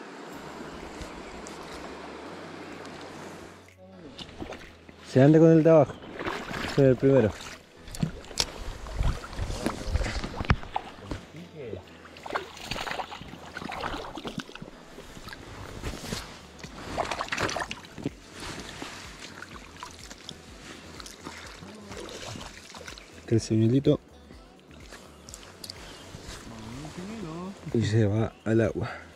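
Water of a river flows and ripples steadily.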